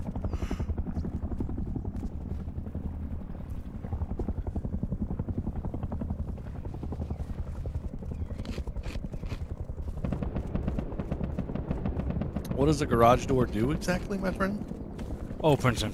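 Footsteps thud quickly and steadily on dirt.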